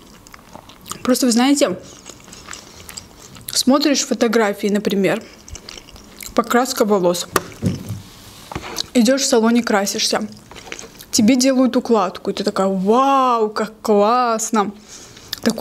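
A young woman speaks softly and closely into a microphone.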